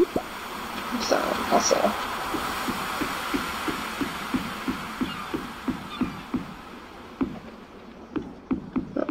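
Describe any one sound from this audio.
Footsteps knock steadily on wooden boards.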